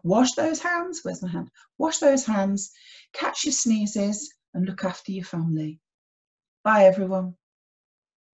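A woman speaks calmly and clearly into a nearby microphone.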